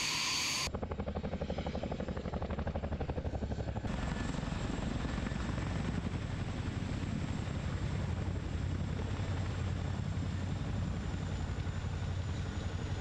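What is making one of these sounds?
A helicopter's rotor blades thump rapidly and loudly close by.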